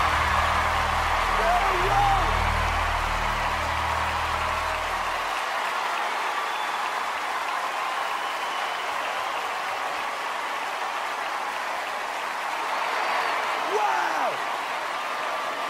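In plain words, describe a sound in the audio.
A large crowd cheers and screams loudly in an echoing hall.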